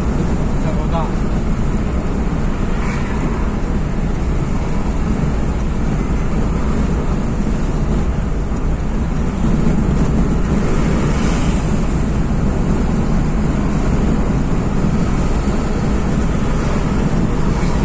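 Tyres roar on a concrete road.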